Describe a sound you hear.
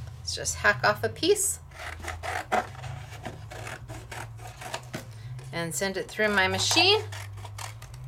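Scissors snip through a thin sheet.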